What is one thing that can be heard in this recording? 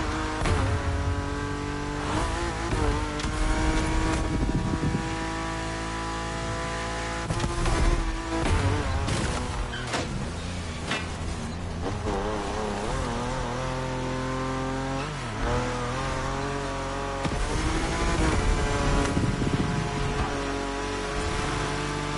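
A high-revving car engine roars and shifts through gears.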